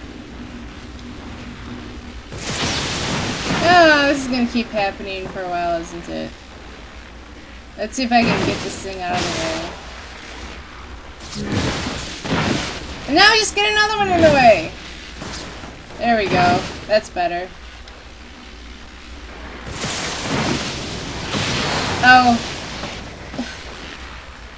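Electricity crackles and buzzes in short bursts.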